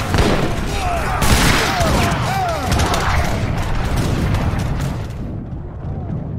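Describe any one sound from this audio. Muskets fire in rapid, crackling volleys.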